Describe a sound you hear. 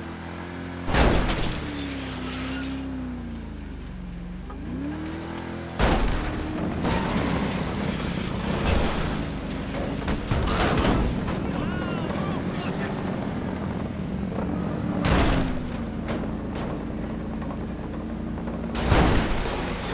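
Heavy thuds and crashes ring out as a car hits people and objects.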